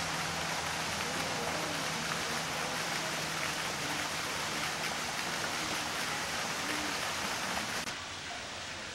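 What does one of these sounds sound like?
Water ripples and laps gently.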